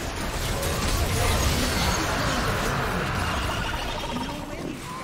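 Video game spell effects whoosh and crackle in a battle.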